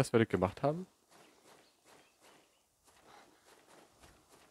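Footsteps crunch softly on the ground at a steady walking pace.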